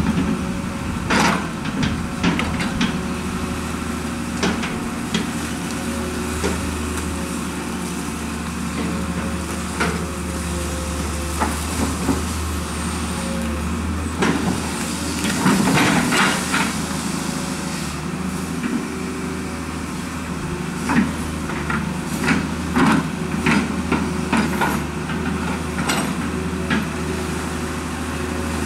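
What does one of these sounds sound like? Metal clanks and knocks from an excavator arm.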